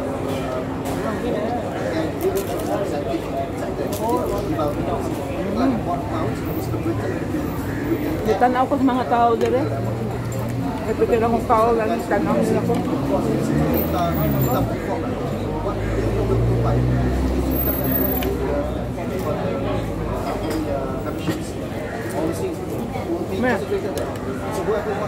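A woman crunches on crispy bread.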